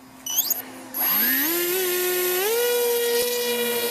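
An electric model plane's motor and propeller spin up with a rising whine.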